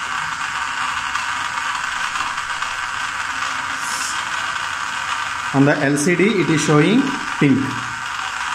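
A small electric motor whirs steadily.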